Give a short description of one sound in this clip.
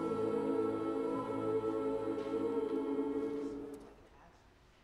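An orchestra and choir hold a final sustained chord in a large hall.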